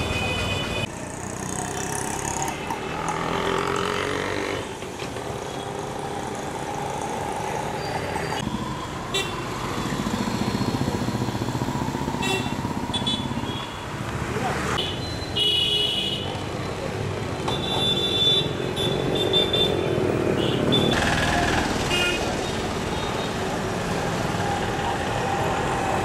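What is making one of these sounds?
Busy street traffic rumbles steadily outdoors.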